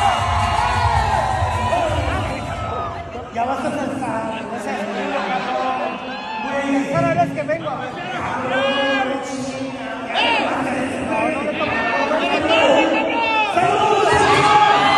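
A man speaks with animation through a microphone over loudspeakers in a large echoing hall.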